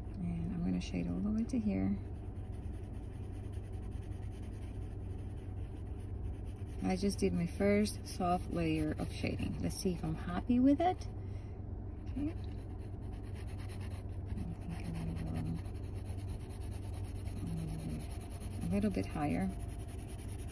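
A pencil scratches and shades on paper.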